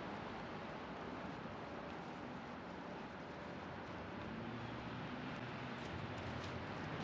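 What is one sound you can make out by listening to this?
A river flows gently with a soft, steady rush of water.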